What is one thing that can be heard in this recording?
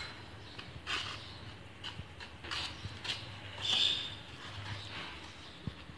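A spoon scrapes and clinks against a bowl while stirring.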